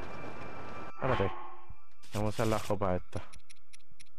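A man speaks briefly with animation, close to a microphone.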